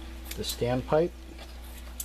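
Scissors snip through fabric.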